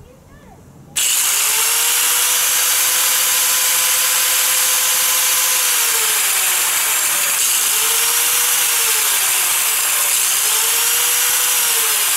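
An electric grinder starts suddenly and whines loudly, slowing down and speeding up again several times.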